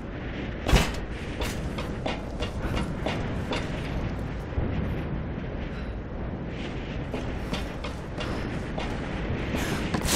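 Footsteps clang on a metal grating.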